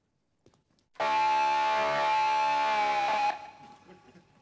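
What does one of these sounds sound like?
An electric guitar plays a loud sustained chord that rings out.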